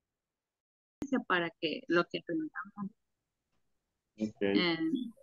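A woman talks with animation over an online call.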